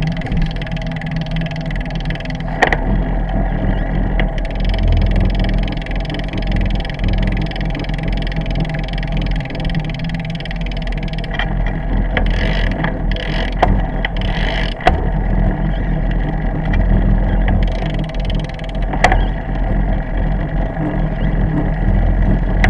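Wind rumbles steadily against a moving bicycle.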